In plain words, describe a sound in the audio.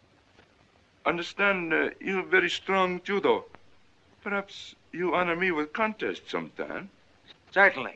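A man speaks firmly in a deep voice.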